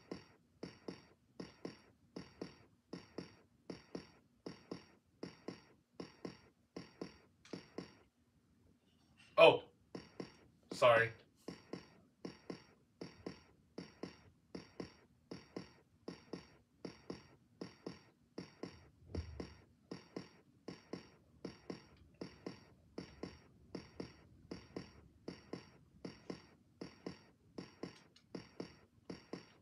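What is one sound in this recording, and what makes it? Video game music plays through a television speaker with a steady, quick beat.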